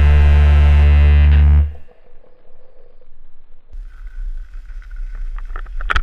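A snowboard scrapes along a metal rail.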